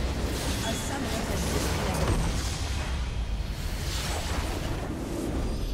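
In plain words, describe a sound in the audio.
Game battle effects crash and explode loudly.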